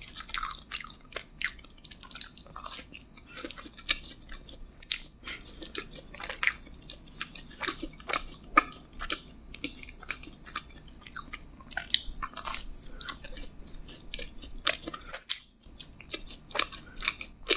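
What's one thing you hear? Sticky, wet mouth sounds smack up close.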